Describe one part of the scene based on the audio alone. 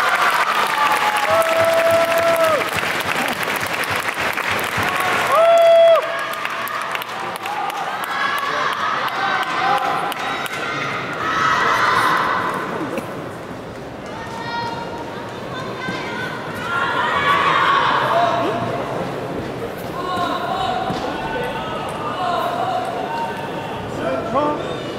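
A large crowd chatters and cheers in a big echoing hall.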